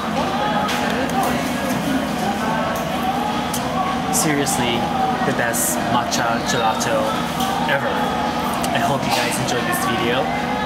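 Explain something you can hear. A middle-aged man talks calmly and warmly, close by.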